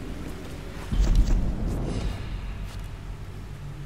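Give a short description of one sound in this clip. A fire bursts up with a loud deep whoosh.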